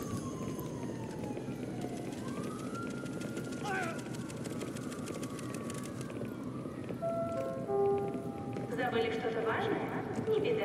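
Footsteps walk across a hard floor in a large echoing hall.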